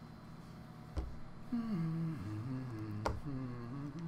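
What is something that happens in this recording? Small plastic pieces tap and scrape on a tabletop.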